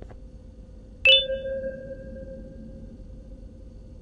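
A bright chime rings once and slowly fades.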